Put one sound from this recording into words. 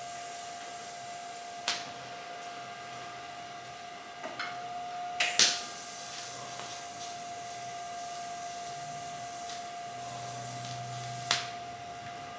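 A welding torch buzzes with a faint steady hum.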